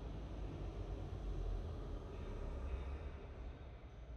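A sports car engine rumbles as the car pulls away.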